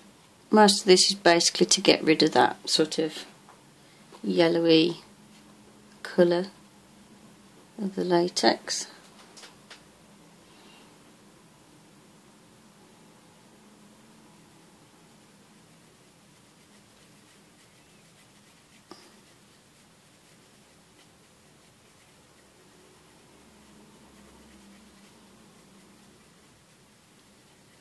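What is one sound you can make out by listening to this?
A paintbrush dabs and brushes softly on a plastic surface.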